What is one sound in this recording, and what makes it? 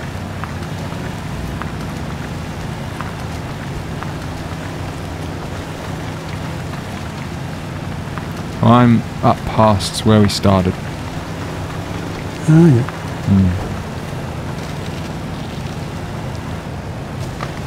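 A truck engine rumbles steadily as it drives slowly over rough ground.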